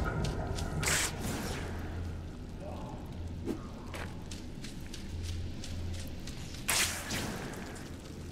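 Web lines whoosh sharply through the air.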